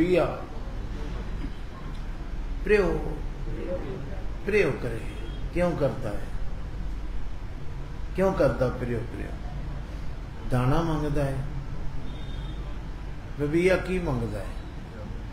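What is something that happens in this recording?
An elderly man speaks slowly into a microphone in short phrases with pauses.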